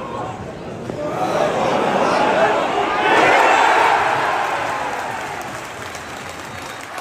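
A large stadium crowd roars and cheers as a goal is scored.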